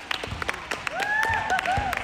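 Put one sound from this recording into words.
Women clap their hands.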